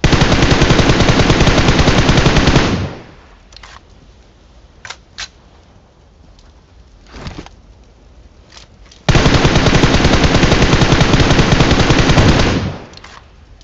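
A rifle fires rapid automatic bursts.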